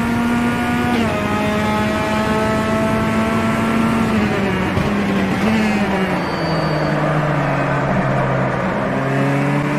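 A four-cylinder touring car engine drops in pitch as the car slows.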